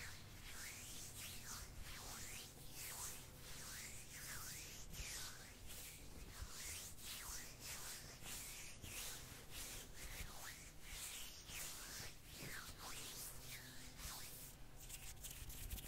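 Hands swish softly and closely past a microphone.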